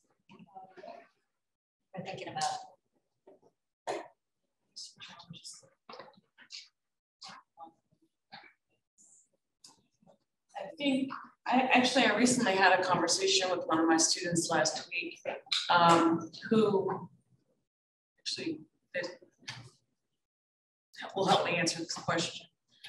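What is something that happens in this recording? A woman speaks calmly into a microphone, with pauses.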